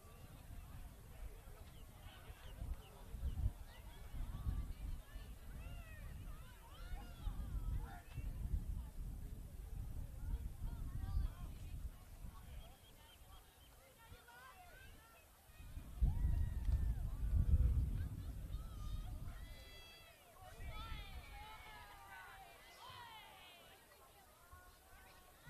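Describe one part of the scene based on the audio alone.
Young players call out to each other on an open field, far off.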